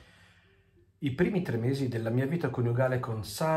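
A middle-aged man reads aloud calmly, close by.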